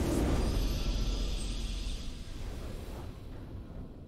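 A triumphant fanfare swells.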